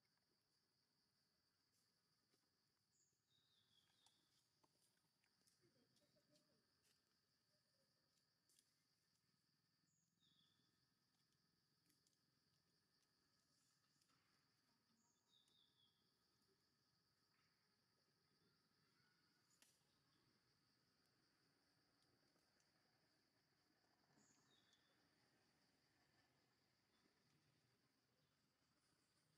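Small monkeys shuffle and scratch on dry bark and leaves.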